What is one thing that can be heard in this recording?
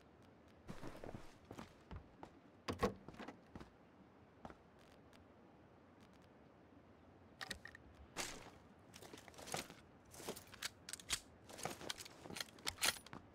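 A wooden door creaks open and shut.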